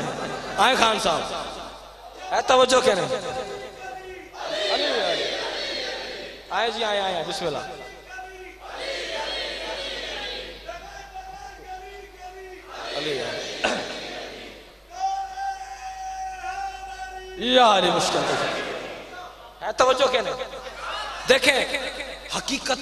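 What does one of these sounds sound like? A young man sings a melodic chant loudly into a microphone, heard through loudspeakers.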